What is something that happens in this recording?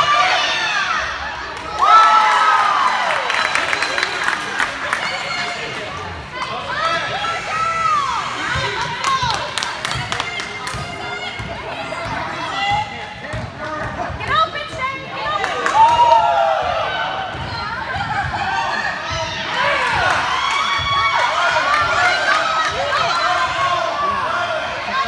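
A crowd of adults shouts and cheers loudly in an echoing gym.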